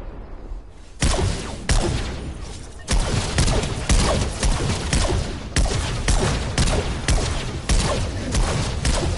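Gunshots fire in quick, repeated bursts.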